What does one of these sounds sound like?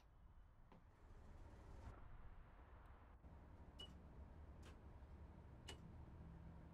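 Switches click several times.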